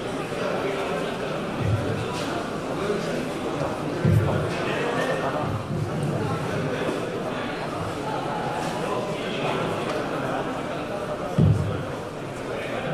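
A crowd of men murmurs in a large echoing hall.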